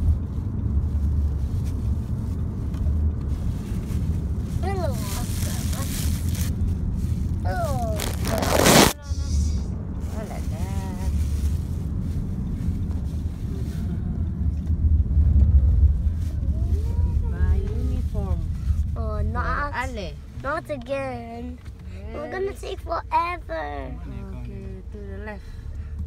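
A car's engine and tyres rumble low and steadily from inside the moving car, growing quieter as it slows.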